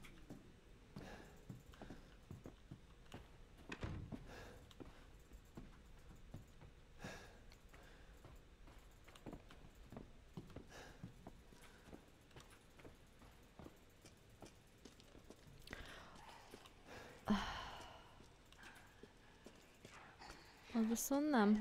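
Footsteps tread slowly across a hard floor.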